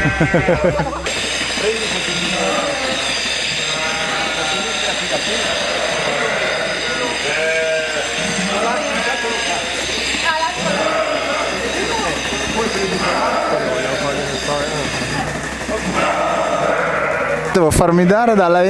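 A crowd of people murmurs in a large room.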